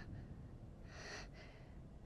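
A little girl speaks quietly.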